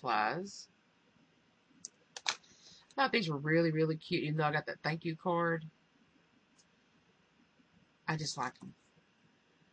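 A woman talks calmly and close up into a microphone.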